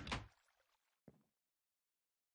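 A wooden chest lid thuds shut.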